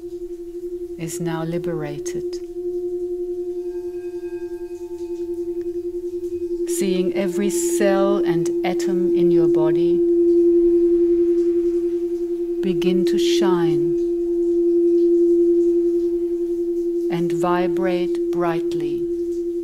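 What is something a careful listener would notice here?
A woman sings softly into a microphone in short phrases.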